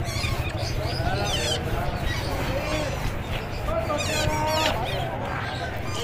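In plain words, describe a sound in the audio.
A spoon scrapes against a metal bowl.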